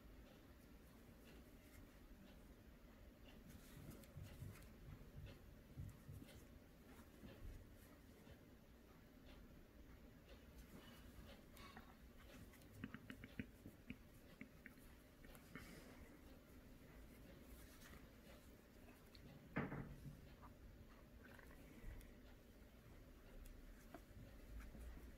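A crochet hook softly clicks and rustles through yarn, close by.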